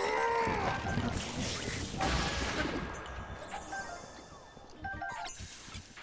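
A sword swishes and strikes.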